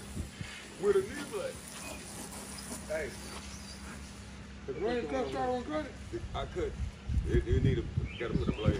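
Men talk casually outdoors close by.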